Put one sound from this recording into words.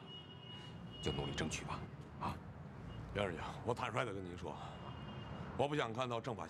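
A younger man answers in a low, earnest voice up close.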